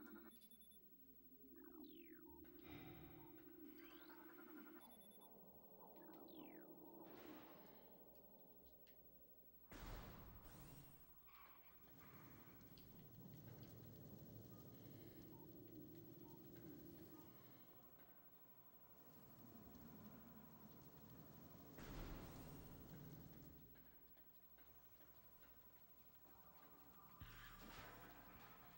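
A low electronic hum drones steadily.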